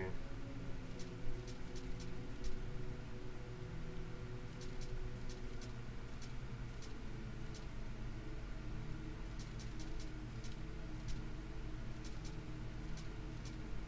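Quick faint clicks tick again and again as a cursor moves over a grid.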